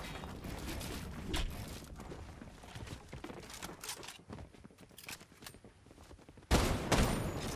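Wooden building pieces clack quickly in a game.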